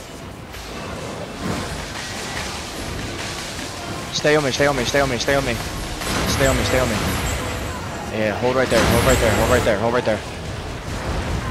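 Game spells crackle and blast in a chaotic battle.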